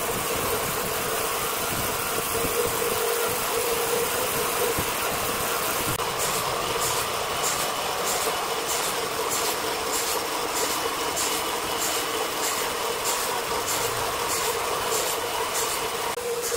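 A large horizontal band saw whines steadily as it cuts through a hardwood log.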